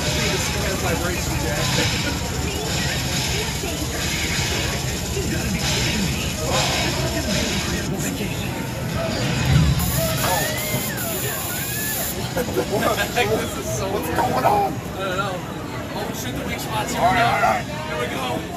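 Arcade game gunfire and effects play loudly through speakers.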